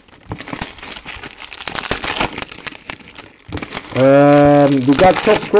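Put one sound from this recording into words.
Foil card wrappers crinkle and tear close by.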